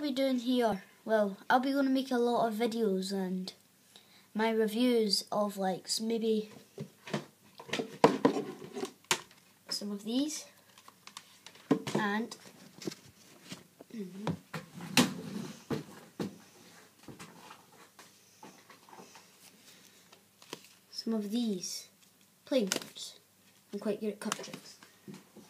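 A young boy talks close to a microphone.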